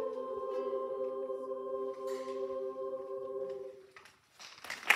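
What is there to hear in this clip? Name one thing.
A choir of young voices holds a final sung chord in a large hall.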